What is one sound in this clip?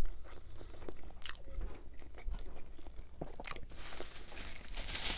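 A man chews food close to a microphone with soft, wet sounds.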